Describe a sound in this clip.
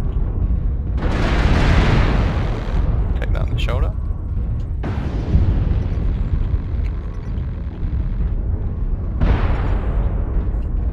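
Missiles explode with deep booming blasts.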